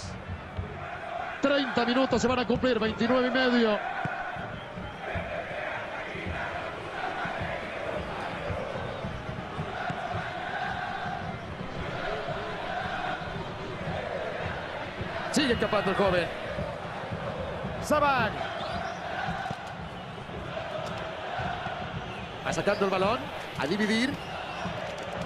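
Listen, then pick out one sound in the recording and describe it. A large crowd chants and cheers steadily in a stadium.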